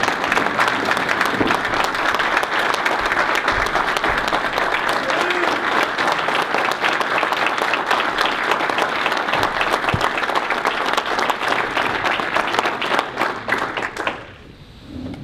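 A crowd applauds steadily in a room.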